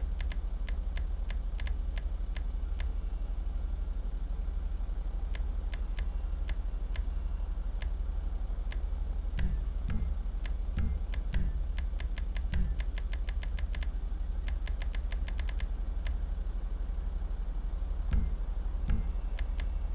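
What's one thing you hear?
Short electronic ticks sound in quick bursts.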